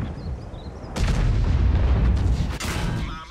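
A shell explodes with a heavy boom.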